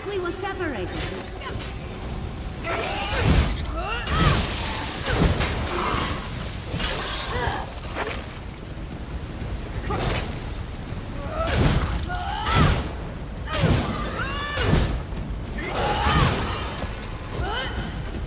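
A giant spider screeches.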